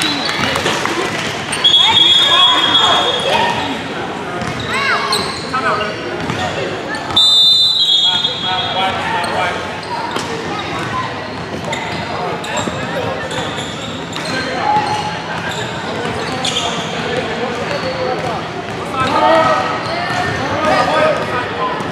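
Young players and spectators call out and chatter around the hall.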